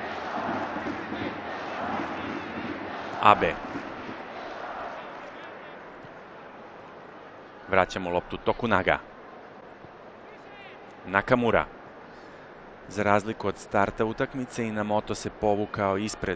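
A large stadium crowd murmurs and cheers in the distance.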